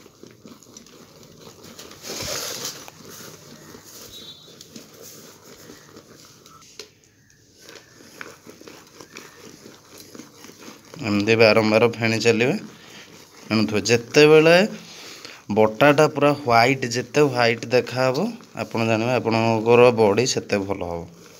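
Wet soapy foam squelches as hands knead it.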